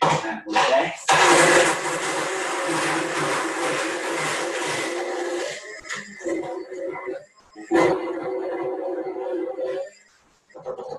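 A blender whirs loudly in bursts.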